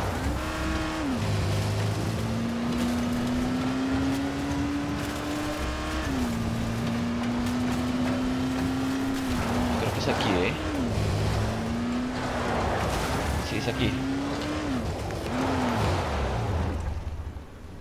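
A buggy engine drones loudly and revs up and down as it drives.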